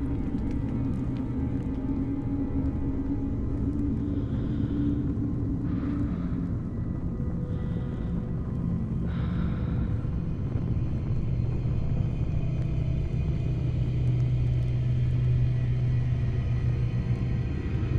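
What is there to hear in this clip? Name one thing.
A wet hand smears thick paint across a cloth surface.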